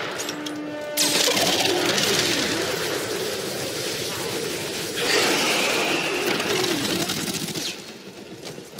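Laser beams hum and crackle loudly.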